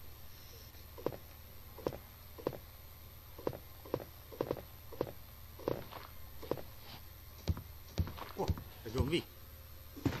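Footsteps thud steadily up wooden stairs.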